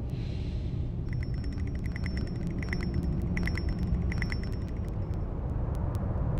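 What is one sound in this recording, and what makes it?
A small metal mechanism clicks and ratchets as it turns.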